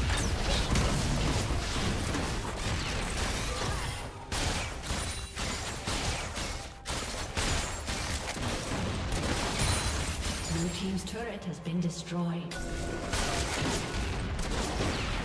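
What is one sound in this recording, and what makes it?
Game spell effects whoosh and crackle in a fast fight.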